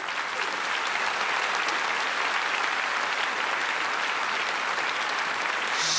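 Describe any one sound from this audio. A large audience applauds in an echoing hall.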